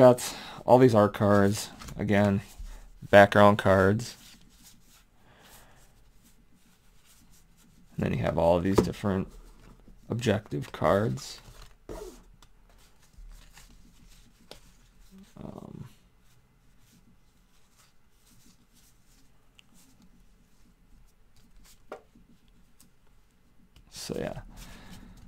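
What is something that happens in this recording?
Playing cards slide and rustle against each other as they are handled.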